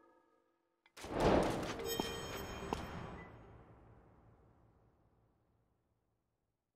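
A sudden magical whoosh bursts out and slowly fades away.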